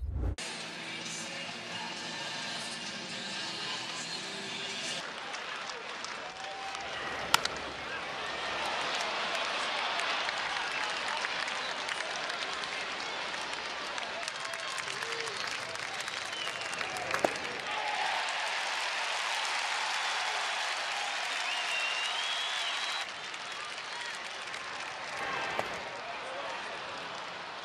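A large crowd murmurs and cheers outdoors.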